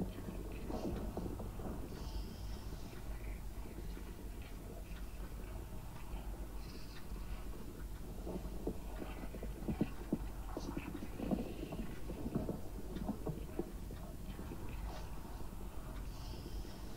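A spacecraft's engines hum low and steady.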